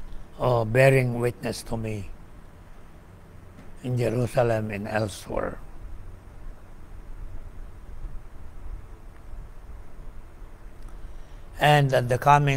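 An elderly man speaks slowly and calmly into a nearby microphone, with long pauses.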